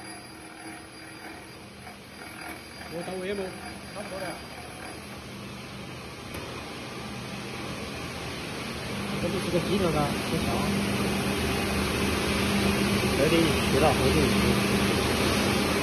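A machine motor hums steadily.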